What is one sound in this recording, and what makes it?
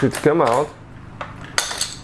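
A ratchet wrench clicks against engine metal.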